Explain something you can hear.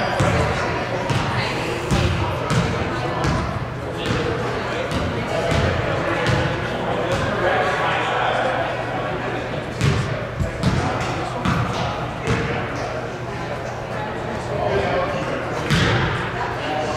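Children chatter and call out across the echoing hall.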